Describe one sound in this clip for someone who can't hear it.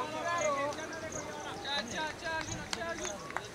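Men call out across an open field from a distance.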